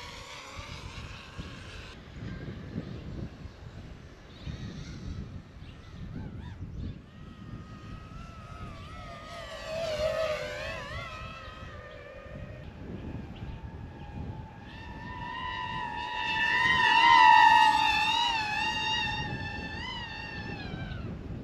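A drone's propellers whine loudly as it races past, the pitch dropping after each pass.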